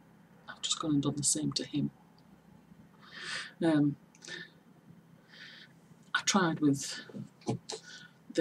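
A middle-aged woman speaks calmly and close to a microphone.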